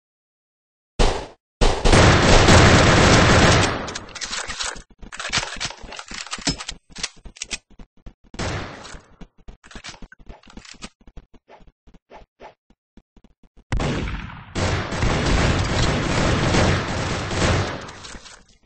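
Explosions boom loudly and rumble.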